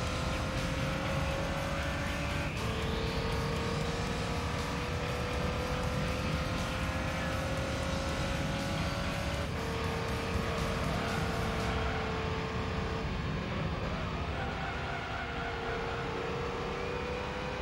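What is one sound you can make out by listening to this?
A racing car engine whines steadily, rising in pitch and dropping at each gear change.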